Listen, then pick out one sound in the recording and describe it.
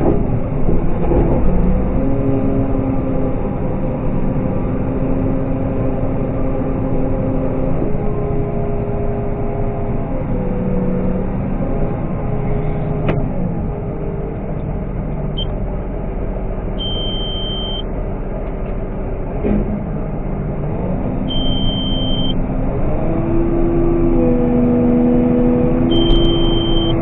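A harvester engine drones loudly and steadily, heard from inside the cab.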